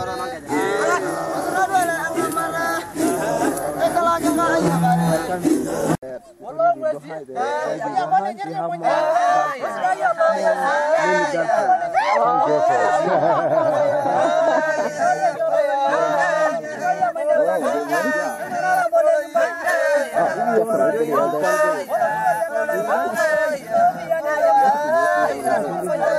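A group of men chant and sing together in deep voices outdoors.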